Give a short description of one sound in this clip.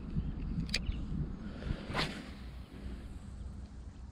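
A fishing reel whirs as line is cast out.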